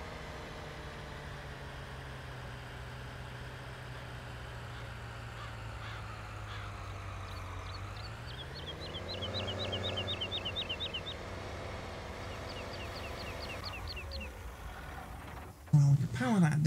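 A tractor engine hums steadily and revs up briefly.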